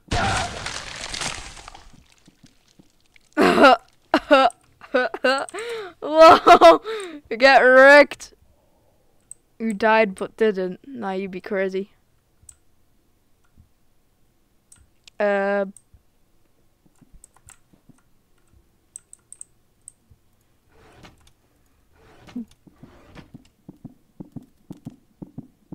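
Keyboard keys click and clatter.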